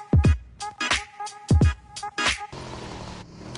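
A motorbike engine revs.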